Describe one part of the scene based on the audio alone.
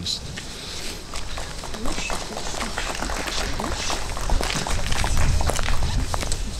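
Footsteps tap on paving stones outdoors.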